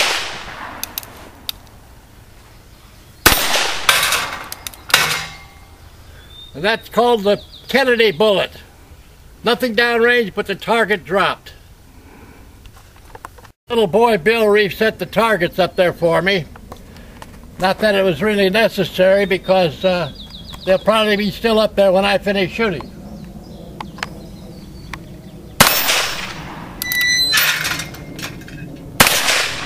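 A revolver fires loud shots outdoors, echoing off the hills.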